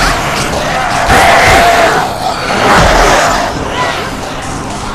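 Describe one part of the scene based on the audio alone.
A zombie snarls and growls up close.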